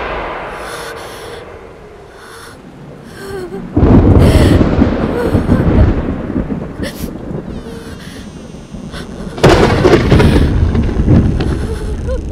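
A young woman gasps in fright.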